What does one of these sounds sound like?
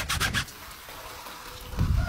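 A hose nozzle sprays water onto a car wheel.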